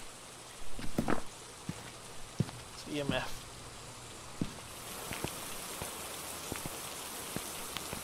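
Footsteps walk along a hard floor.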